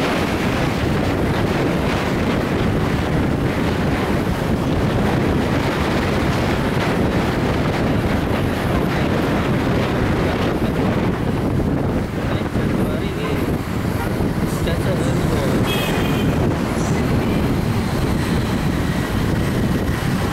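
Wind rushes loudly past a moving motorbike.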